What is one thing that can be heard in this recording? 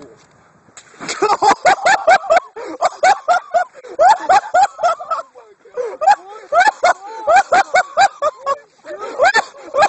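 Young men laugh and shout loudly close by.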